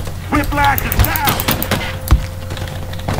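A pistol fires loud shots.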